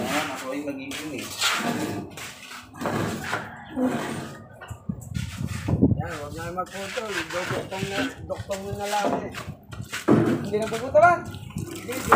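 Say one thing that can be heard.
Wooden poles knock and clatter against each other.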